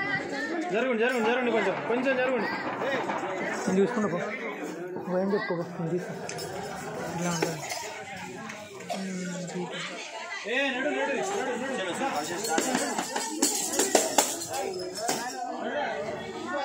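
Boys and men sing a chant together.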